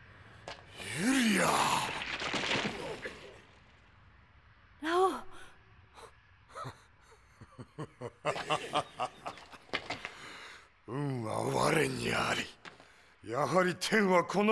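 A man roars loudly in rage.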